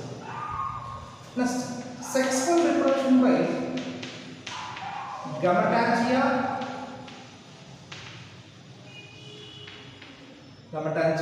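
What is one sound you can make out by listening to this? A man lectures calmly in a room with some echo.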